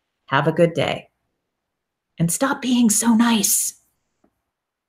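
A woman speaks calmly into a microphone over an online call.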